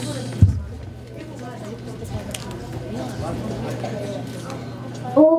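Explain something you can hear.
Children chatter and murmur in a large echoing hall.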